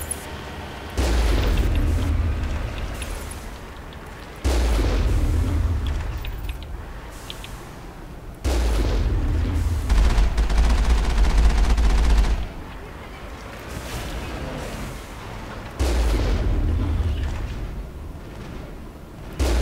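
A heavy cannon fires loud, deep booms that slowly die away.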